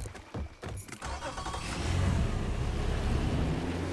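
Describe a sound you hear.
A boat's outboard motor starts and rumbles steadily.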